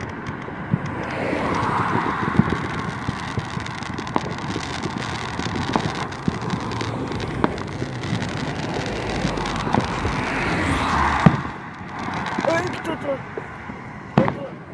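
Cars drive past on the road.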